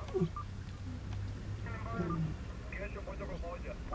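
A lioness's paws splash in shallow water.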